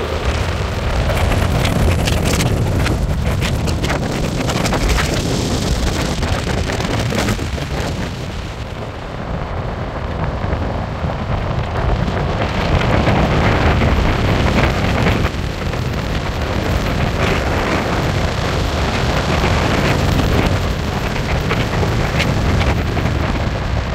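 A car drives along a road, its engine and tyres rumbling steadily.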